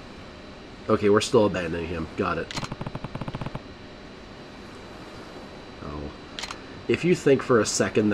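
A man speaks in a calm, low voice.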